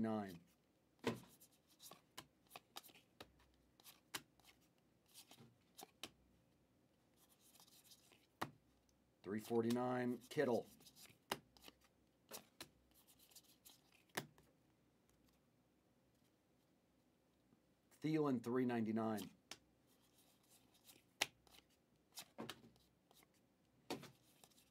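Trading cards click and rustle as they are shuffled by hand.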